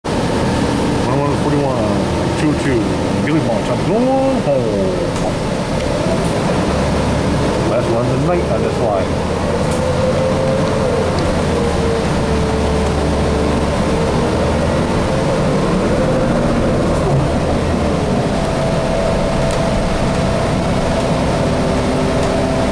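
A bus engine hums and rumbles steadily while the bus drives.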